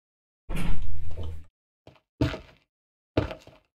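Stone blocks are set down with short, dull knocks.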